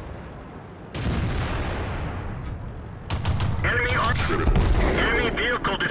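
A tank cannon fires with loud booms.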